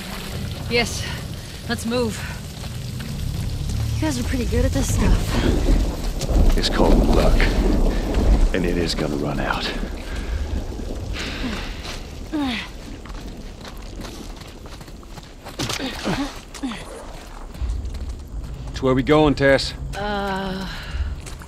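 Footsteps tread over gravel and leaves.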